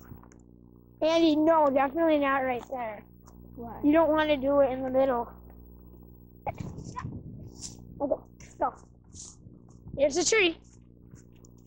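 A young child speaks in a high voice close by.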